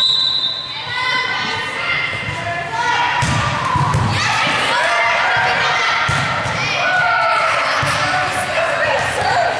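Young women call out to each other across an echoing gym.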